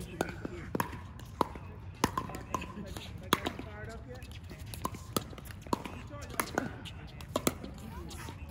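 Paddles strike plastic balls with sharp hollow pops, again and again.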